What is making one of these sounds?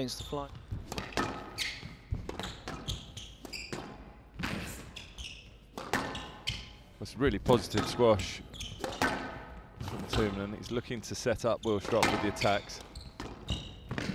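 A squash ball smacks off rackets and walls in quick rallies.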